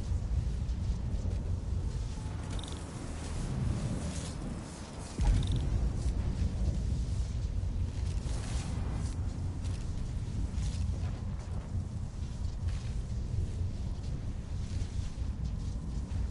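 A generator hums with a deep, steady drone.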